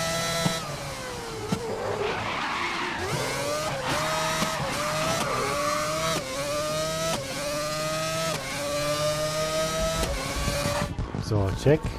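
A racing car engine screams at high revs, rising and dropping in pitch as it shifts gears.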